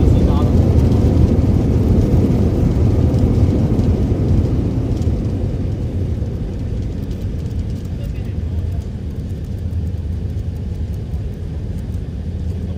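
Tyres rumble along a runway.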